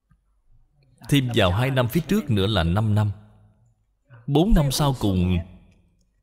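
An elderly man speaks calmly and steadily into a microphone.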